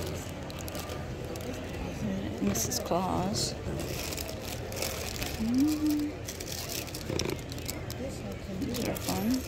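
Plastic wrappers crinkle and rustle as a hand sorts through them.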